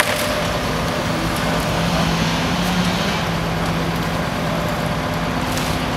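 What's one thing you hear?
Tree branches crack and snap as a grapple pulls them.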